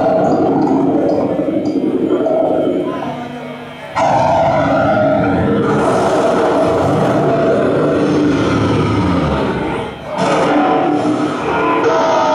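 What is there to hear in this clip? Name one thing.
A man sings forcefully into a microphone.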